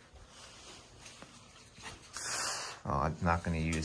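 A fabric curtain rustles as it is pulled aside.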